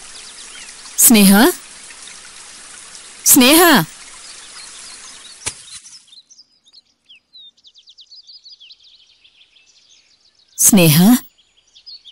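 A middle-aged woman speaks loudly, in short phrases, close by.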